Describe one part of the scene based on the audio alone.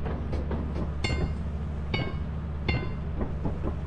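A metal shovel clangs against metal with a ringing tone.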